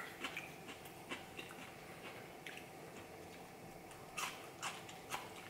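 A woman chews food with wet, smacking sounds close by.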